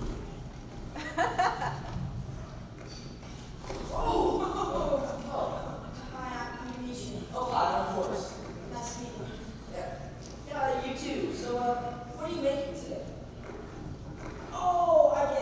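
Teenage boys talk with animation, heard in a large hall.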